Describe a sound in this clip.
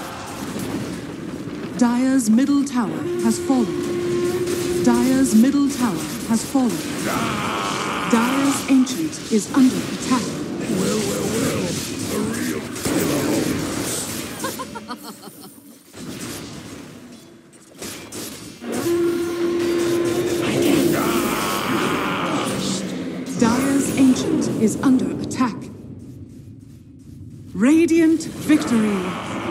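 Magic spells burst and weapons clash in a hectic fight.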